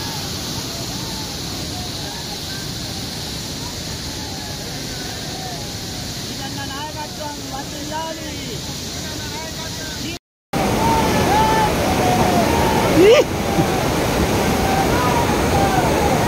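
Water rushes and roars loudly over a spillway, heard outdoors.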